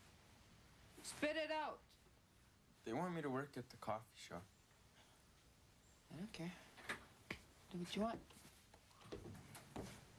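A young man speaks quietly.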